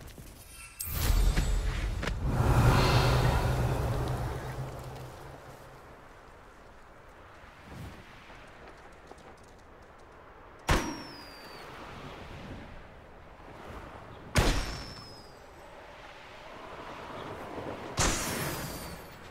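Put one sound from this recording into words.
Wind rushes past as a broom flies fast through the air.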